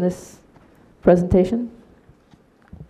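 A middle-aged woman speaks briefly into a microphone.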